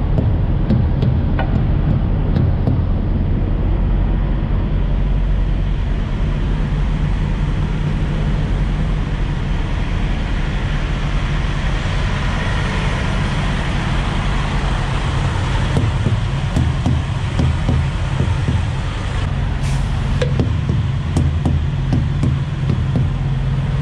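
A mallet thumps against truck tyres in short knocks.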